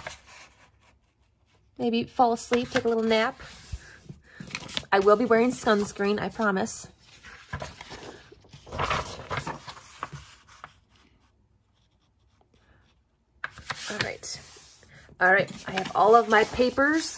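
Sheets of paper rustle and slide as hands handle and fold them.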